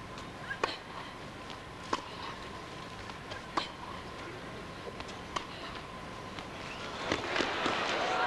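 Tennis balls are struck sharply back and forth with rackets in a large echoing hall.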